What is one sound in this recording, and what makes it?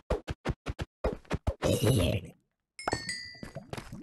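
A zombie groans nearby.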